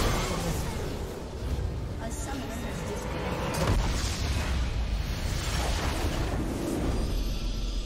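Game battle effects clash and explode loudly.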